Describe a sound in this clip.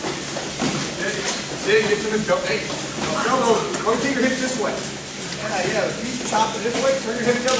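A man speaks loudly and firmly in a large echoing hall.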